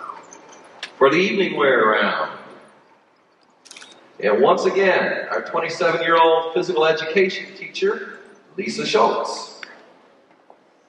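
A man speaks calmly into a microphone, heard over loudspeakers in a large echoing hall.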